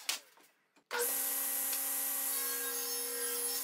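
A table saw motor hums steadily.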